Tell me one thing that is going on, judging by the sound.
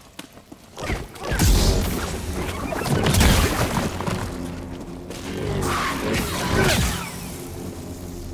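An energy blade hums and swooshes through the air.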